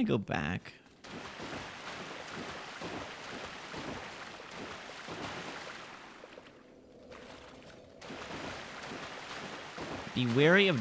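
Footsteps splash steadily through shallow water.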